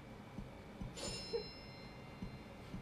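A phone chimes briefly nearby.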